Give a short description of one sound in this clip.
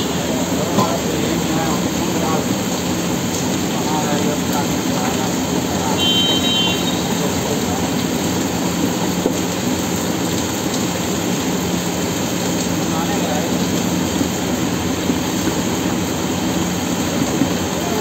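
A spoon scrapes and stirs inside a metal pot.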